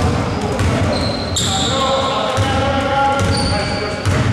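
A basketball thumps as it bounces on a wooden floor.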